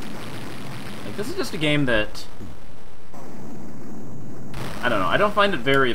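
A video game building crumbles with a rumbling crash.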